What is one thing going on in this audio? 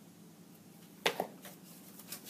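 Scissors clatter down onto a table.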